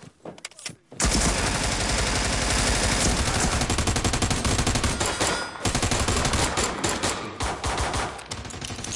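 Gunfire rattles in rapid, loud bursts close by.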